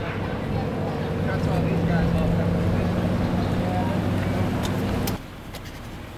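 A heavy engine rumbles loudly nearby.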